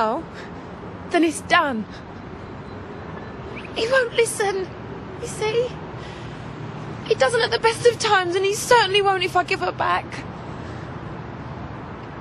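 A young woman sobs and cries.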